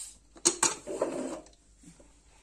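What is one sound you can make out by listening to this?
A metal lid clanks as it is lifted off a pressure cooker.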